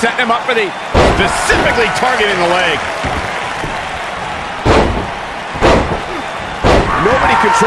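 Heavy thuds ring out as bodies slam onto a wrestling ring mat.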